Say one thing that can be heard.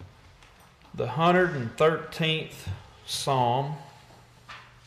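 A middle-aged man speaks briefly and loudly through a microphone.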